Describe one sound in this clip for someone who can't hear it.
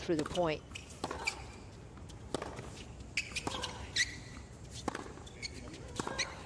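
A tennis ball is struck back and forth with sharp pops of the racket.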